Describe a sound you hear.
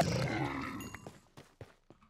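A block breaks with a crunch.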